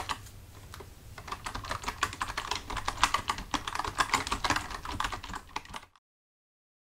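Fingers type on a computer keyboard.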